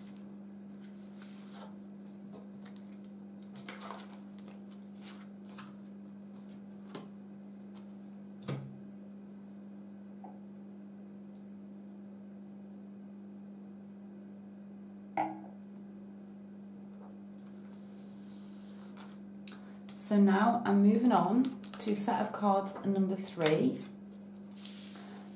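Playing cards are laid down softly on a cloth.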